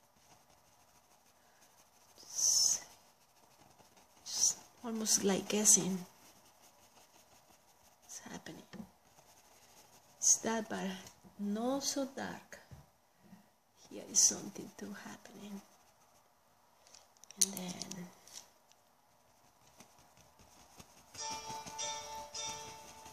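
A paintbrush strokes softly on canvas.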